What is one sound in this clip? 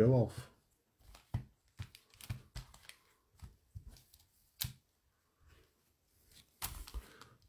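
Foil card-pack wrappers crinkle and tap as they are set down onto a mat.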